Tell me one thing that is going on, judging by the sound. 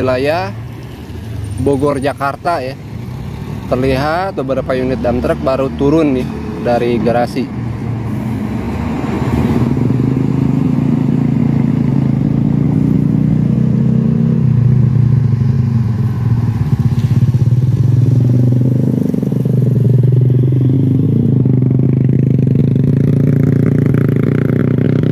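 Heavy truck engines rumble nearby as trucks drive by.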